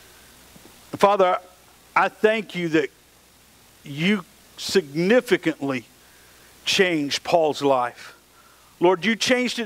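A middle-aged man speaks with animation through a microphone.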